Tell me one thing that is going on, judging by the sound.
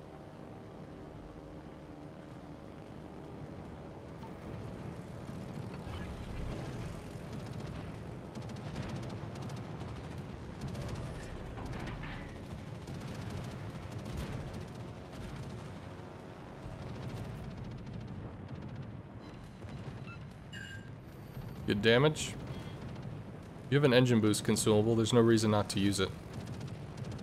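Aircraft engines drone steadily.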